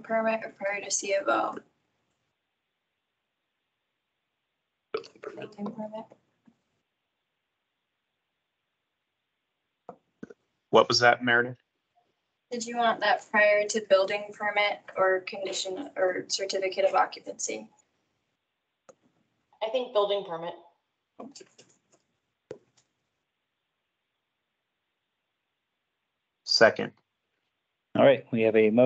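A young woman speaks calmly over an online call, in bursts with pauses.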